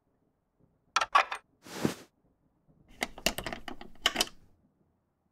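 A key clicks and rattles in a door lock.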